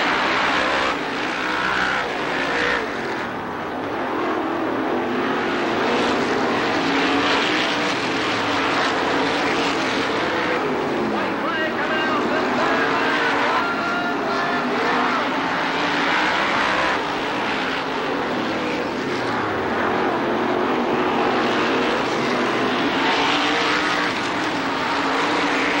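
Race car engines roar loudly as they speed around a dirt track.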